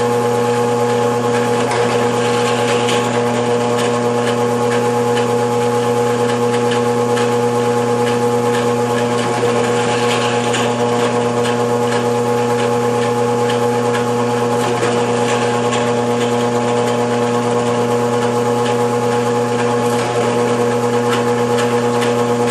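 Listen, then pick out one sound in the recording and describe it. A drill press motor hums steadily close by.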